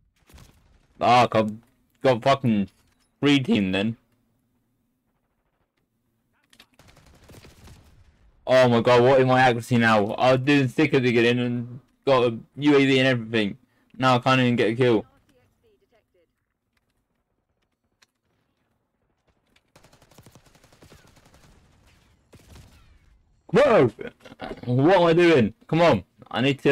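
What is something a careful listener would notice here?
A man speaks with animation into a close microphone, in bursts.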